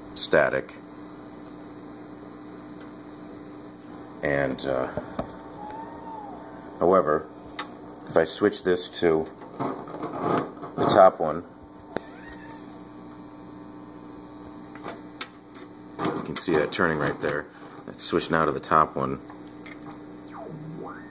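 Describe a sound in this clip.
A radio knob clicks as it is turned.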